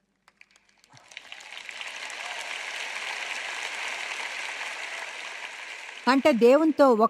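An audience applauds in a large hall.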